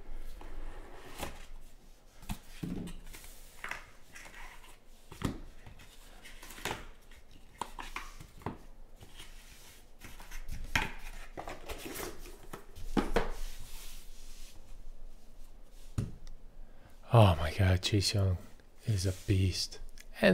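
Cardboard boxes and card packs rustle and tap as they are handled.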